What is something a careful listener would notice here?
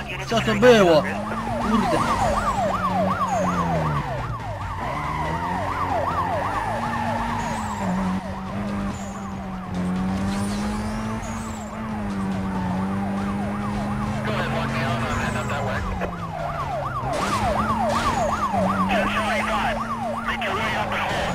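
Police sirens wail nearby.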